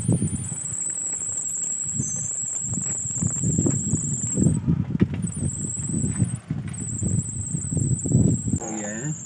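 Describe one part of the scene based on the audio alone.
A small car engine idles nearby.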